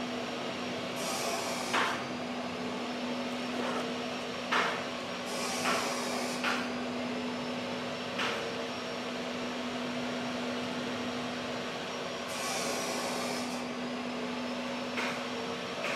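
An engine idles with a steady hum.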